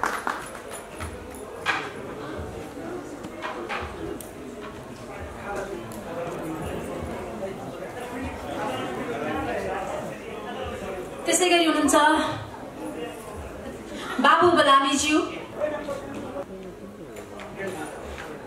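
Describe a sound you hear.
A man talks calmly nearby in an echoing hall.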